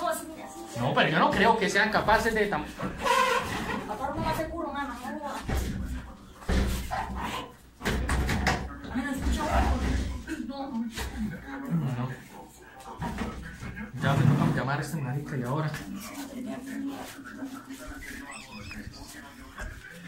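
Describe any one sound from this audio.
A heavy mattress bumps and scrapes against the floor.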